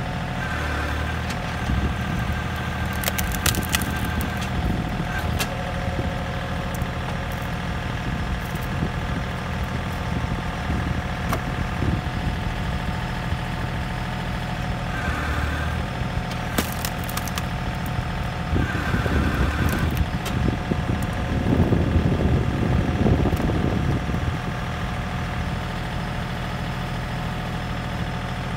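A tractor engine idles steadily nearby.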